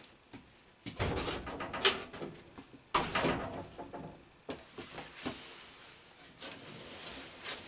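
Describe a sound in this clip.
A wooden frame bumps and clatters as it is loaded into a van.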